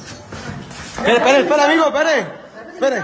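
A young man shouts loudly and excitedly nearby.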